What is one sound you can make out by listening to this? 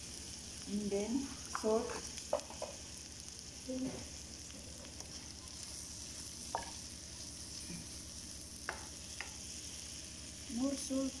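A wooden spoon scrapes and knocks against a metal pan.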